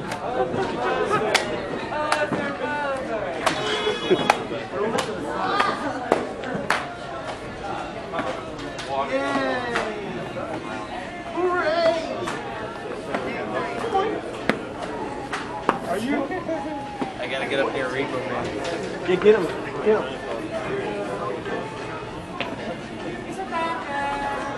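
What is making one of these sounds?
A crowd of men and women chatters all around in an echoing hall.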